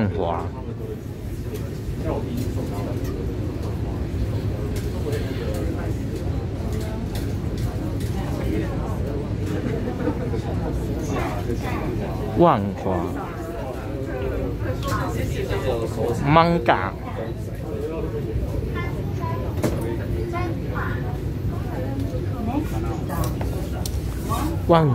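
A metro train rumbles steadily along the tracks.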